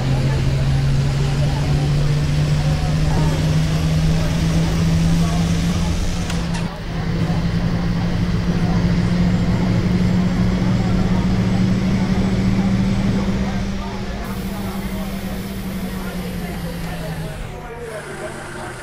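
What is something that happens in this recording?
A bus engine hums steadily, then winds down as the bus slows to a stop.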